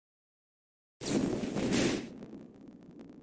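A fiery whoosh bursts out as a card is played in a game.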